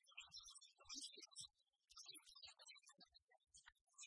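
A crowd claps in applause.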